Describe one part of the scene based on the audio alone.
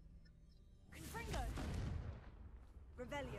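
A fiery spell bursts with a loud whoosh.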